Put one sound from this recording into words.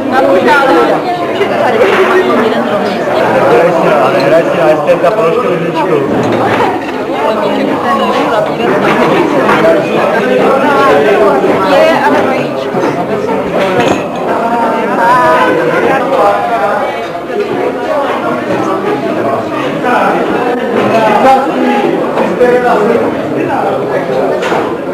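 A crowd of men and women chatters all around in a busy room.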